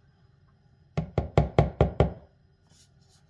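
A spatula scrapes rapidly against a measuring cup.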